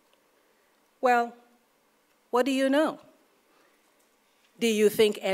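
A woman speaks calmly into a microphone, in short phrases with pauses.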